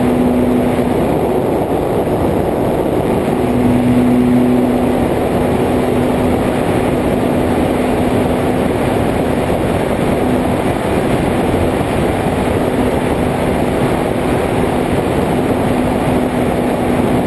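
Wind rushes loudly past the aircraft.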